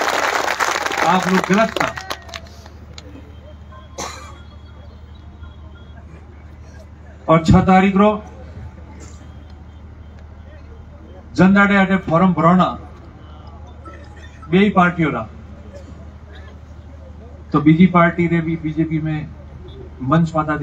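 A man speaks loudly through a microphone and loudspeakers in short, forceful phrases with pauses between them, outdoors.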